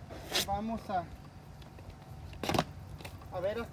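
Asphalt shingles scrape and thump as they are set down.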